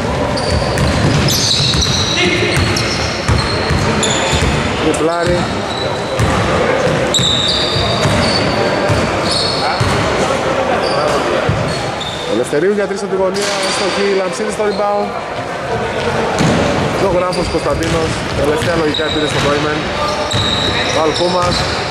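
Men call out and shout to each other across an echoing hall.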